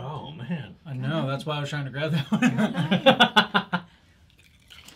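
Young men laugh loudly together.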